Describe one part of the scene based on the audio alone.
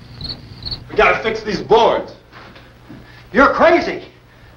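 A man speaks urgently, close by.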